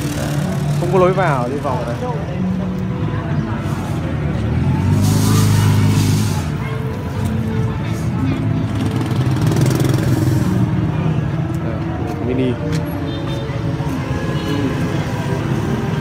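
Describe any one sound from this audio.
Men and women chatter at a distance in a busy outdoor crowd.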